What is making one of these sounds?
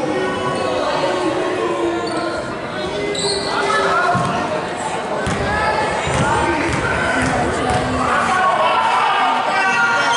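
Spectators chatter nearby in a large echoing gym.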